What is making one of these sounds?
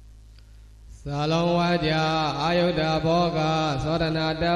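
A young man chants in a steady, drawn-out voice through a microphone.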